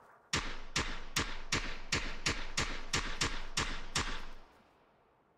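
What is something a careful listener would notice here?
A rifle fires a rapid string of shots.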